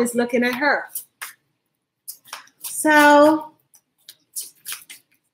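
Paper rustles in a woman's hands.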